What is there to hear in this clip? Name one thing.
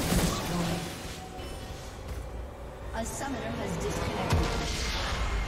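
Fighting game effects clash and crackle.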